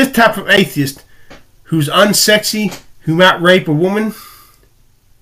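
An older man speaks with animation close to a microphone.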